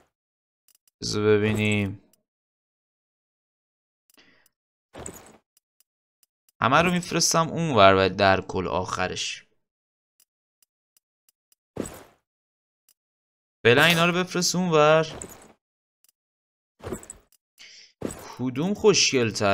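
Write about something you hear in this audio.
A young man talks animatedly and close to a microphone, in bursts with pauses.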